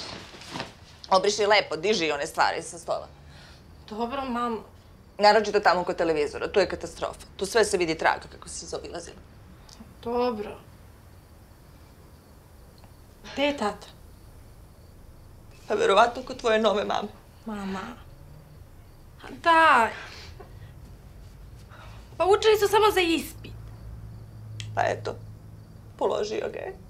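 Another young woman answers softly, close by.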